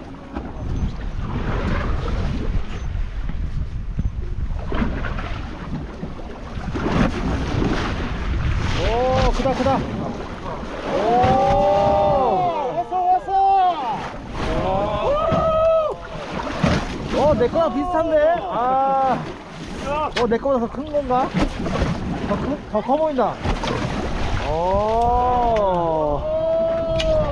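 Wind blows steadily outdoors over open water.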